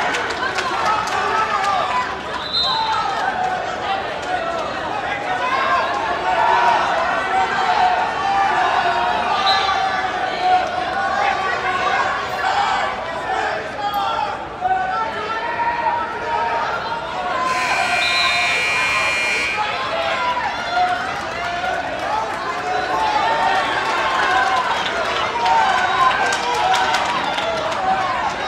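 A crowd chatters in an echoing gym.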